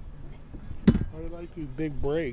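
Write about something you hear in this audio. A man speaks casually nearby outdoors.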